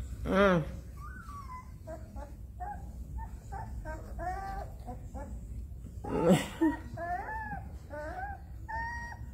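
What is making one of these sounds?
Newborn puppies whimper and squeal in high, thin cries.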